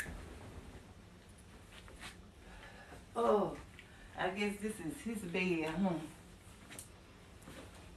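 Bed sheets rustle as they are smoothed.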